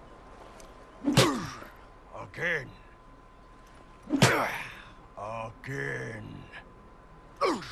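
A deep-voiced man grunts loudly with effort, close by.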